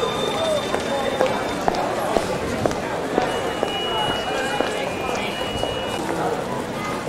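A tram rolls slowly past close by.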